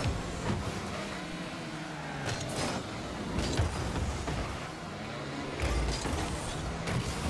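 A video game car's engine hums as it drives.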